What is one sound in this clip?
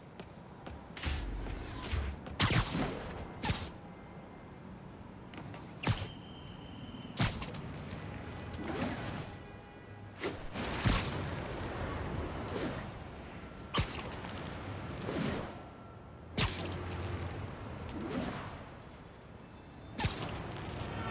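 Wind rushes past while swinging through the air.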